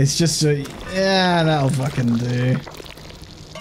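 A young man talks animatedly into a close microphone, drawing out his words.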